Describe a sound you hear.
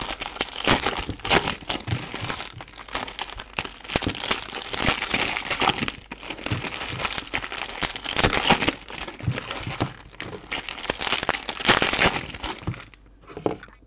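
Plastic wrappers crinkle and rustle loudly as they are torn open.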